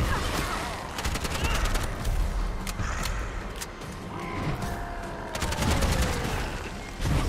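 A rifle fires rapid bursts.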